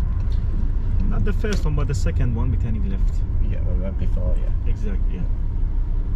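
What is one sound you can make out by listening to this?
A man speaks calmly nearby inside the car.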